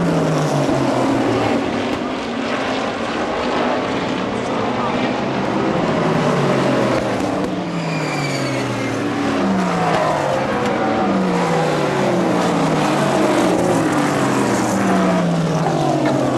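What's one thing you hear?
Racing car engines roar and whine as cars speed past on a track.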